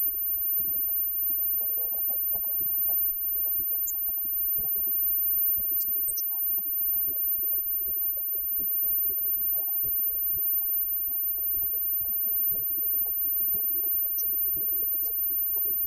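Electric guitars play a loud rock tune through amplifiers.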